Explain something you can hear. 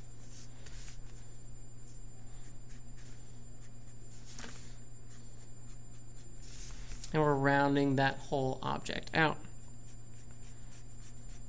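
A felt-tip marker scratches across paper in quick shading strokes.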